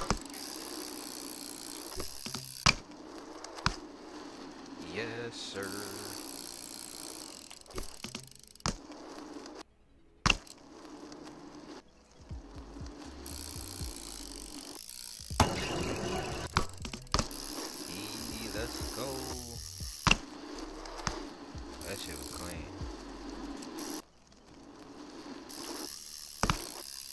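Bicycle tyres roll over concrete.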